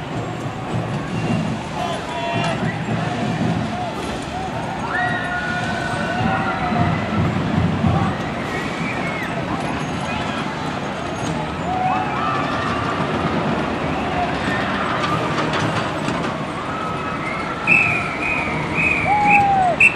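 A marching band plays brass horns outdoors.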